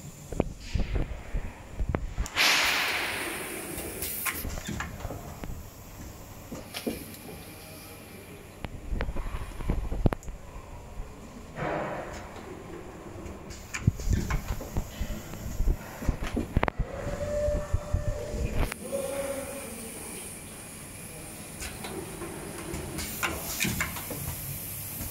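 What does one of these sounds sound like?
A machine hums and clatters steadily with sharp mechanical knocks.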